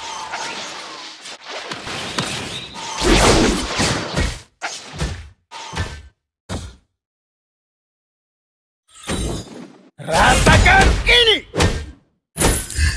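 Video game spell effects whoosh and crash in short bursts.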